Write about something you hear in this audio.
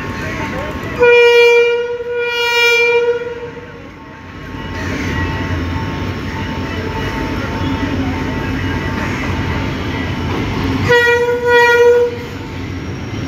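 A train horn blares loudly in two bursts.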